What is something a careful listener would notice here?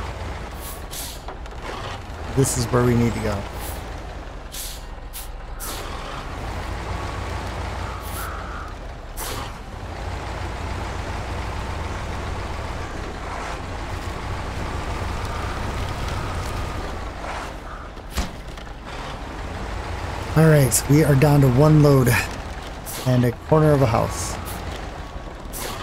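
A heavy truck engine rumbles steadily.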